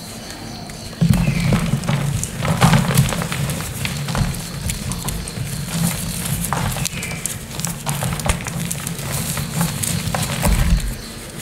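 Dry powder crumbles and rustles between hands.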